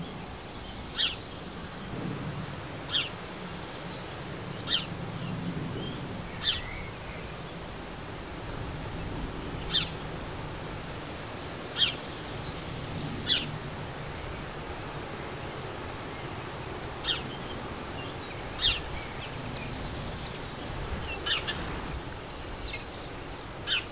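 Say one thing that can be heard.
A small bird chirps in short, sharp calls, over and over.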